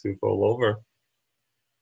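A young man speaks briefly and calmly into a close microphone.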